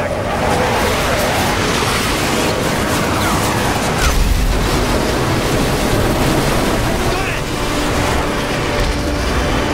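A jet roars overhead.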